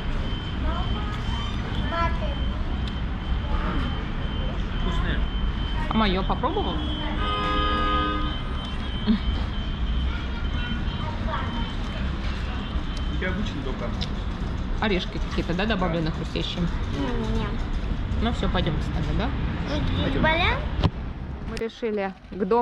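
A young girl speaks softly.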